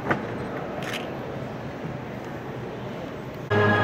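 Footsteps tap across a stage.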